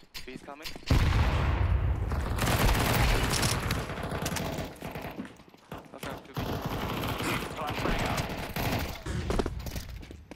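A video game submachine gun fires in rapid bursts.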